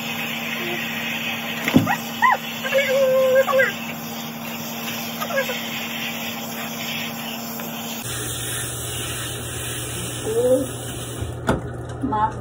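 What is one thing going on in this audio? Water sprays steadily from a shower head.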